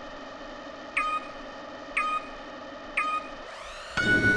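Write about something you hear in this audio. Three short countdown beeps sound, one per second.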